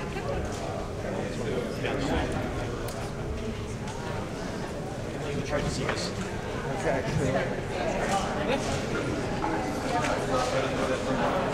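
A crowd of men and women chat in a murmur.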